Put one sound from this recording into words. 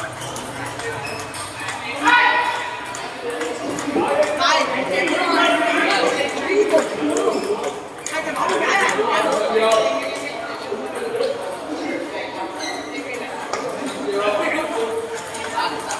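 Ping-pong balls click and tap on tables and paddles.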